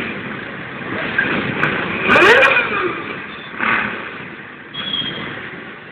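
Many motorcycle engines idle and rev in an open square, heard from a distance.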